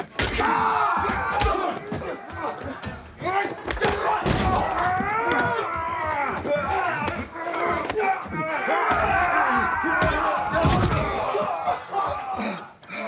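Men shout and grunt close by in a scuffle.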